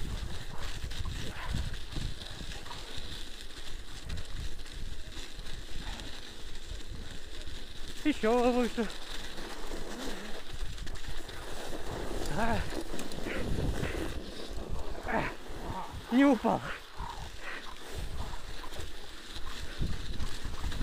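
Wind rumbles and buffets outdoors.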